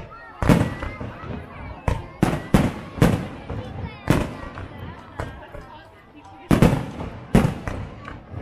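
Fireworks burst with loud booming bangs.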